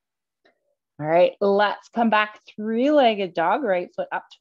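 A woman speaks calmly, giving instructions close to a microphone.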